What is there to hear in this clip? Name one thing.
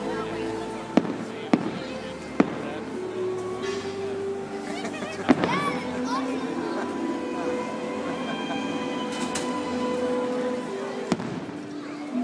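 Fireworks boom in the distance.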